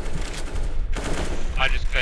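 An automatic rifle fires a burst.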